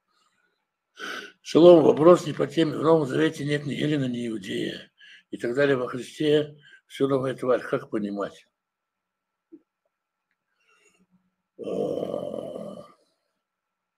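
An elderly man speaks into a nearby microphone with animation.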